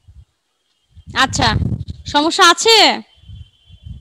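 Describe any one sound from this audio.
A woman speaks calmly and close through a headset microphone.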